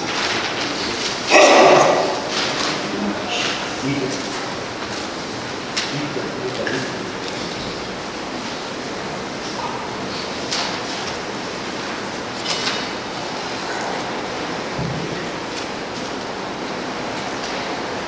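A man speaks in a steady, solemn voice, echoing in a large room.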